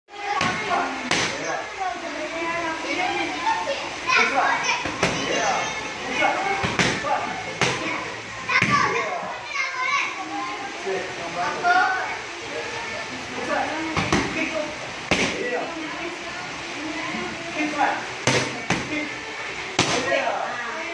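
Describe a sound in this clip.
Gloved punches and kicks smack sharply against pads, many times.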